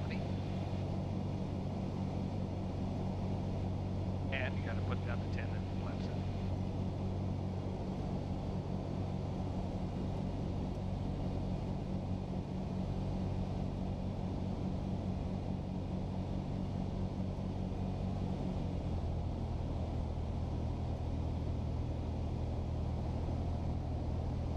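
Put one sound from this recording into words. A small plane's propeller engine drones steadily and loudly, dropping lower near the end.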